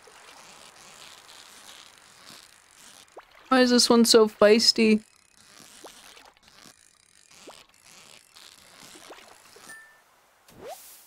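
A fishing reel whirs and clicks as a line is reeled in.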